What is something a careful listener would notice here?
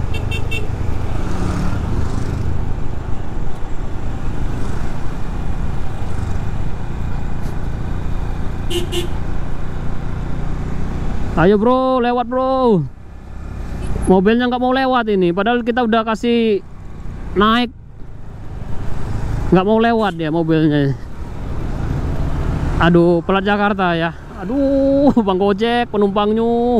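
Motor scooters drive past with buzzing engines.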